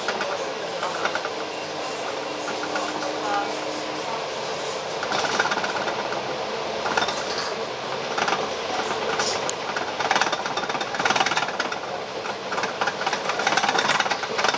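City traffic rumbles steadily along a busy street.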